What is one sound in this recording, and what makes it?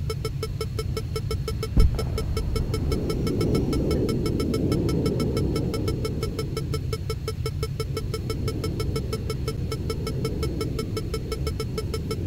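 A warning tone beeps in a fast, steady rhythm.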